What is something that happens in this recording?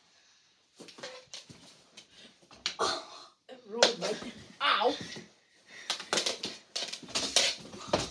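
Hockey sticks clack and tap against a ball on a hard floor.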